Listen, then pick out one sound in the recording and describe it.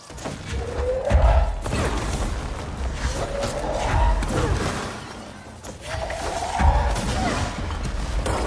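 A man talks close to a microphone with animation.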